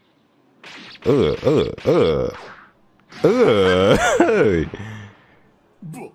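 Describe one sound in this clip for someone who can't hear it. A young man shouts with animation into a close microphone.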